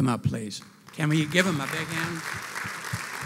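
An older man speaks with animation through a microphone in a large echoing hall.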